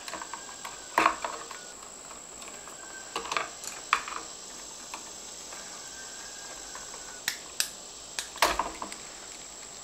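A screwdriver clicks and taps against a metal electrical box.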